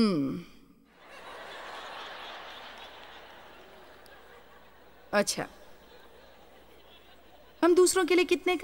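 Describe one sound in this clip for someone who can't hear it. An audience in a large hall laughs.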